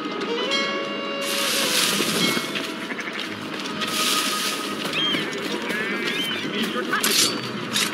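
Footsteps rustle through grass and bushes.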